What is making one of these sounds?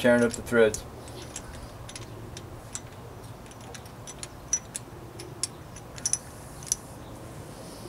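Small metal parts click and tap against an engine.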